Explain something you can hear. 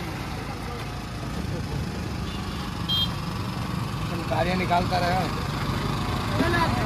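A busy street market hums with crowd chatter and traffic.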